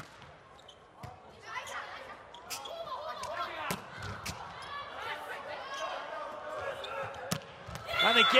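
A volleyball is struck sharply by hands several times.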